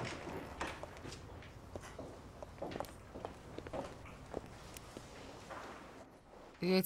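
Footsteps tap lightly on a hard floor.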